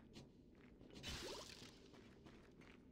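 A magic blast whooshes and strikes.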